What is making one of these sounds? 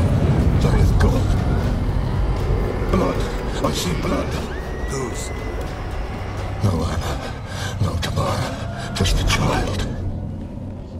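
An elderly man speaks in a hoarse, shaking voice.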